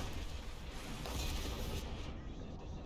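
A shell explodes with a heavy boom.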